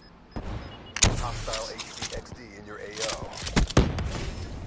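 A rocket launcher fires with a heavy boom.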